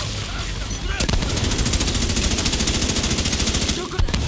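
A rifle fires rapid bursts of gunshots.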